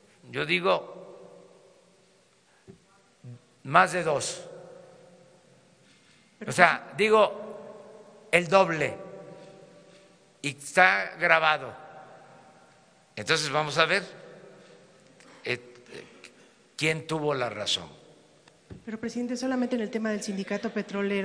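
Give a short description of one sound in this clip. An elderly man speaks calmly into a microphone in a reverberant hall, in short bursts with pauses.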